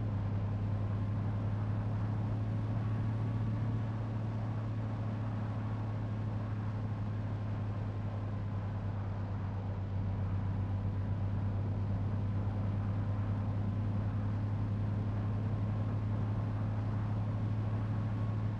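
A bus engine drones steadily at speed.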